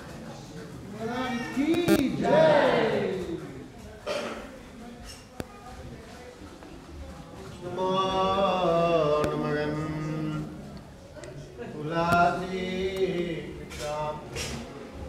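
Several people sing a chant together.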